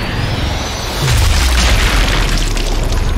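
A bullet strikes with a deep, booming impact.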